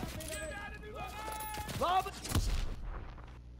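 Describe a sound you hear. A rifle fires nearby.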